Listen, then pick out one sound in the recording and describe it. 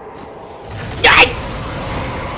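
A large creature lets out a sudden, short roar.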